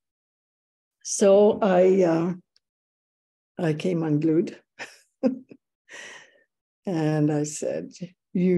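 An elderly woman talks warmly over an online call.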